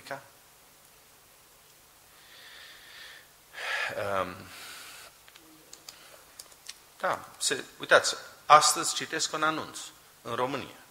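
A man speaks with emphasis into a microphone.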